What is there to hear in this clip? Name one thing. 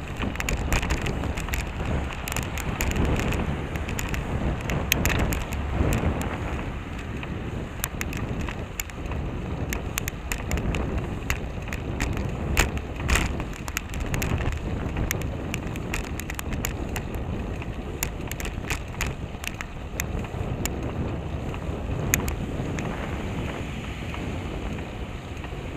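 Wind rushes and buffets loudly past a moving bicycle.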